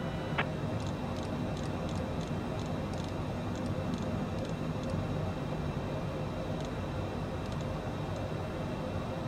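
A jet engine hums steadily in the cabin.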